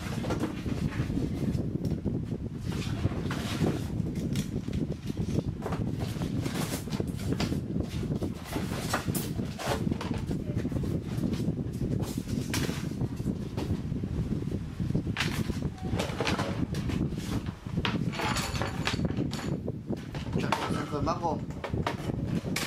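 Plastic parts click and knock as they are handled.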